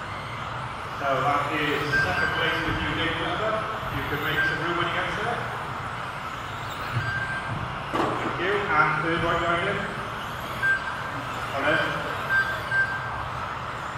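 A man talks nearby in a large echoing hall.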